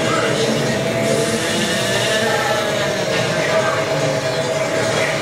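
Racing game engines whine steadily from a television speaker.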